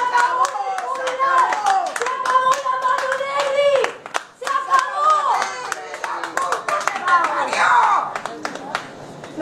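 A group of women chant and cheer together.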